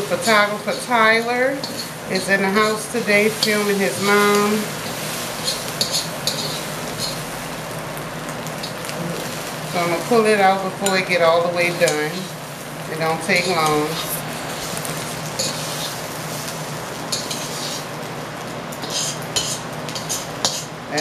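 Metal tongs scrape and clink against a pan.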